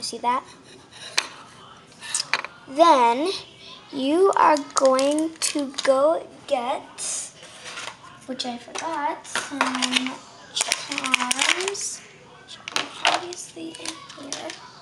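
A young girl talks and sings in a high voice close by.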